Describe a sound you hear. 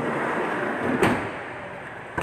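A van door clunks.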